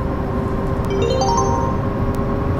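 An electronic ticket machine beeps in a quick rising chime.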